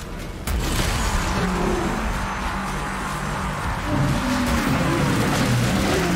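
A powerful beam roars steadily.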